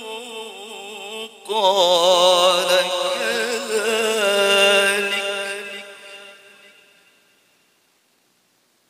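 A man chants a long, melodic recitation into a microphone and lets the last note fade away.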